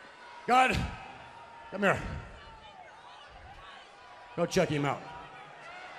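An older man speaks forcefully into a microphone, heard through loudspeakers in a large echoing arena.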